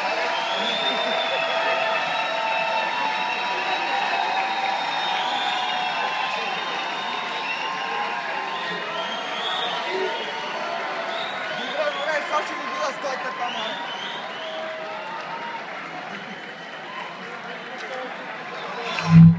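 Loud music plays from a distant stage over loudspeakers.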